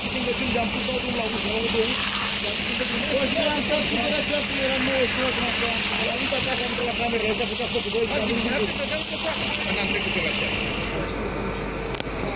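Voices of a crowd murmur and call out outdoors.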